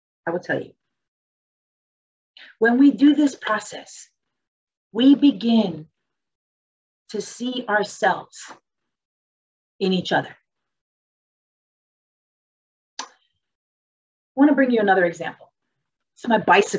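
A woman speaks calmly and close to a microphone, with pauses.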